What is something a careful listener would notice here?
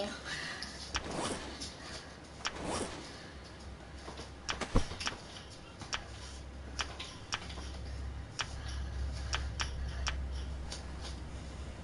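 Short soft clicks tick now and then.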